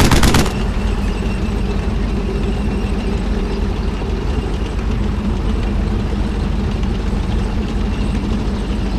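Tank tracks clank and rattle over the ground.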